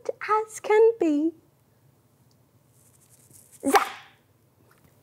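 A young woman speaks playfully and with animation close to a microphone.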